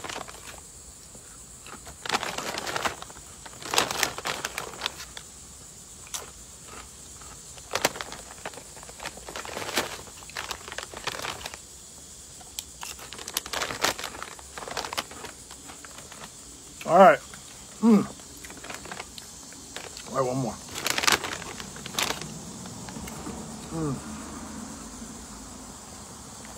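A snack bag crinkles loudly close by.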